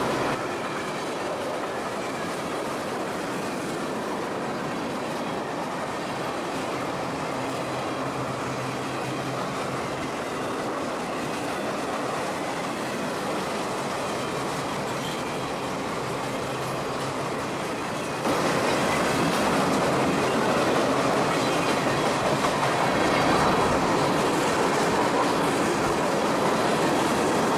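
A long freight train rumbles steadily along the tracks.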